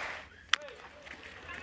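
A bat cracks sharply against a baseball.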